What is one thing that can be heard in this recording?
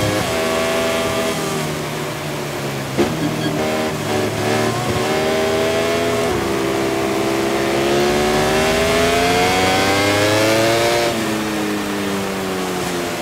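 A motorcycle engine revs high, rising and falling in pitch as it shifts gears.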